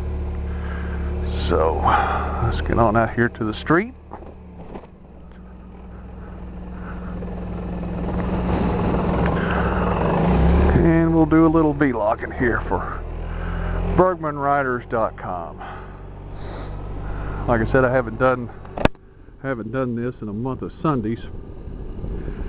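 A motorcycle engine rumbles steadily and revs up as the motorcycle pulls away.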